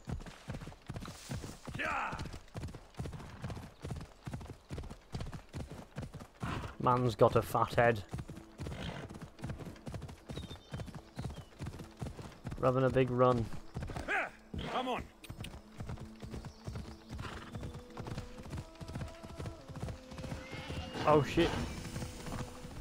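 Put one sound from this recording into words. A horse's hooves pound quickly on the ground.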